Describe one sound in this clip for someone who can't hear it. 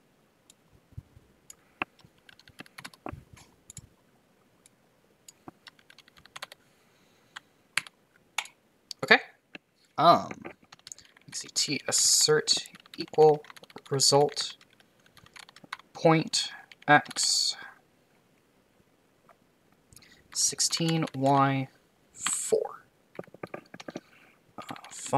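Keyboard keys click rapidly.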